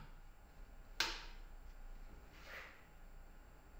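Saxophone keys click softly.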